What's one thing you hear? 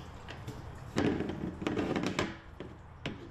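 A hose knocks and rattles against a plastic tank.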